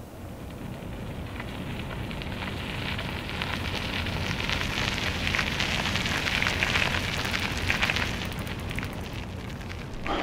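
Bicycle tyres crunch on gravel as riders pass close by.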